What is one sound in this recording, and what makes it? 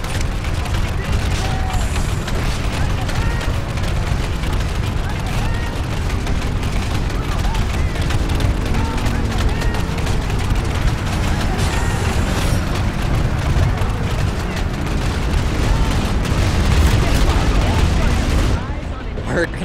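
Heavy walking machines rumble and thud with a deep, steady roar.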